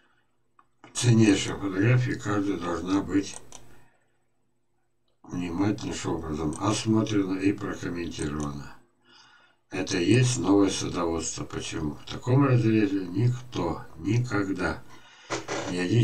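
An elderly man talks calmly and close into a microphone.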